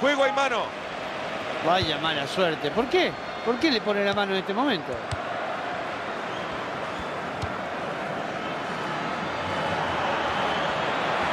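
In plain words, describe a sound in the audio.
A large crowd cheers and murmurs steadily in a stadium.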